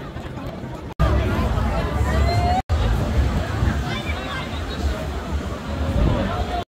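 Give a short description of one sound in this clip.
A crowd of people chatters and walks along an outdoor street.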